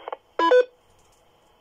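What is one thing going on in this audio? A handheld radio beeps sharply.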